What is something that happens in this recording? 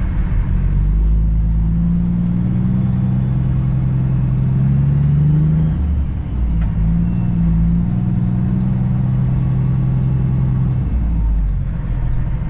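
A truck engine revs and labours as it pulls through a turn.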